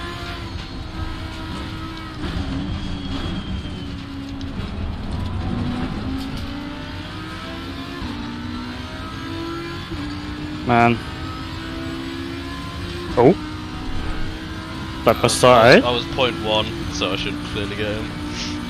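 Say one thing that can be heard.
A racing car engine roars steadily, rising and falling in pitch as it shifts through gears.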